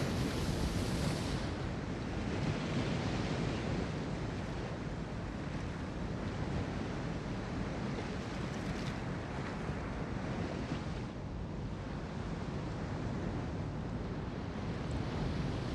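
Water splashes and washes along a ship's hull.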